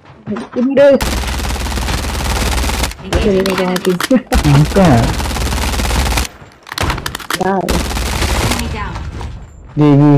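Gunfire rattles in rapid, loud bursts close by.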